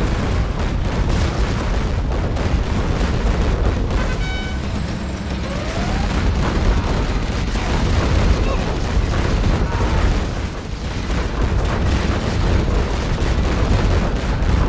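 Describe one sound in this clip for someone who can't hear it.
Tank cannons fire in rapid, repeated booms.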